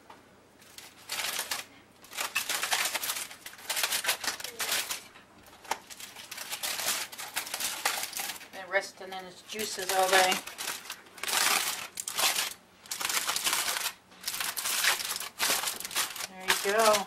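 Aluminium foil crinkles and rustles as it is handled.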